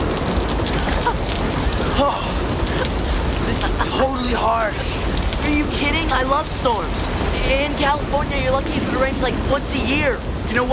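A young woman shouts over the rain.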